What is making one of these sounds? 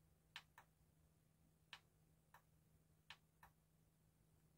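Buttons on a cassette deck click as a finger presses them.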